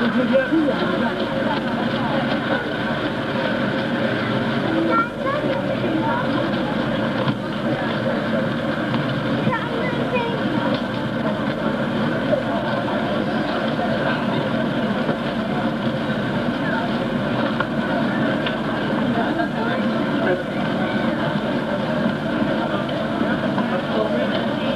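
A crowd chatters outdoors all around.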